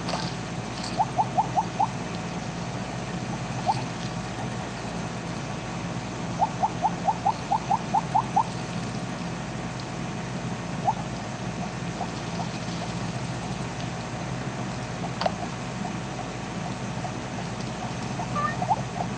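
Short rising electronic blips chime in quick runs.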